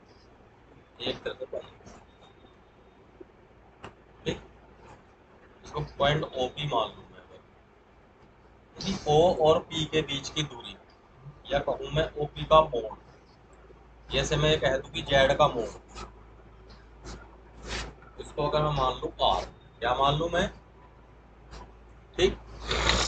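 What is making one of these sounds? A man lectures calmly nearby, pausing now and then.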